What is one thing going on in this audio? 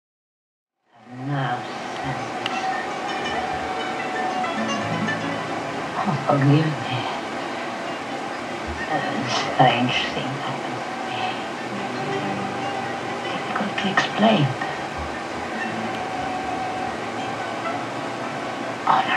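Music plays from a television speaker.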